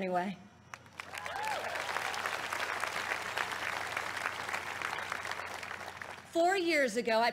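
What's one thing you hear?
A large outdoor crowd applauds and cheers.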